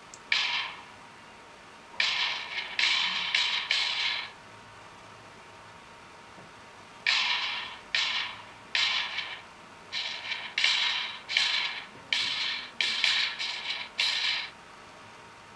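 A phone game plays short bursts of popping chimes through a small speaker.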